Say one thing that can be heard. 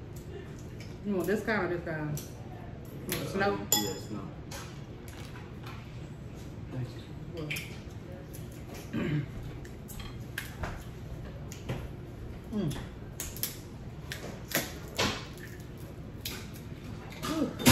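Crab shells crack and snap as they are broken open.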